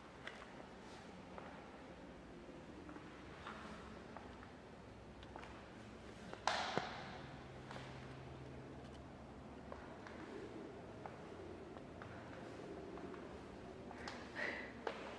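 Footsteps sound on a hard floor in an echoing room.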